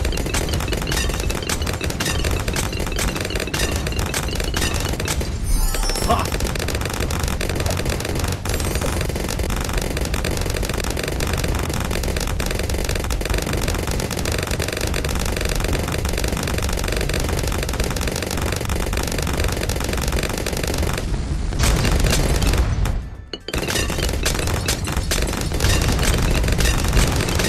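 Game cannons and guns fire rapidly.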